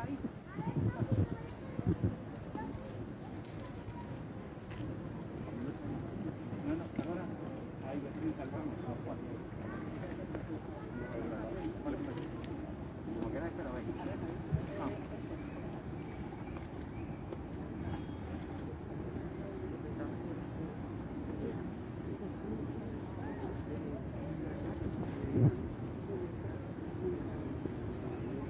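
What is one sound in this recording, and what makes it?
A crowd murmurs quietly outdoors.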